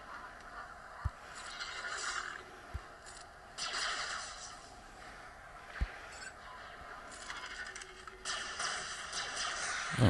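Laser blasts fire and hit with booming thuds.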